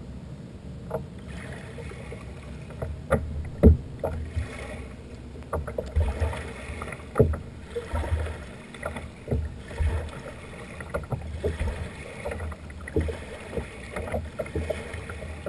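Small waves lap and splash against the shore close by.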